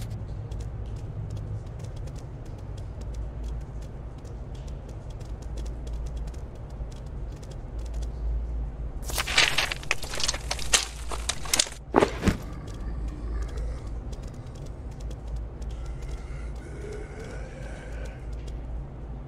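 Footsteps patter softly on a hard floor.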